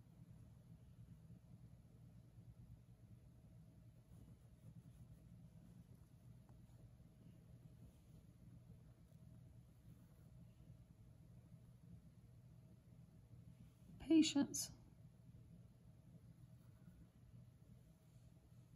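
Thread rustles softly as it is pulled through cloth.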